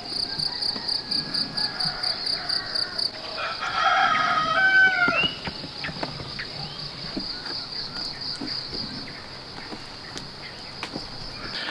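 Rain drips steadily from a thatched roof.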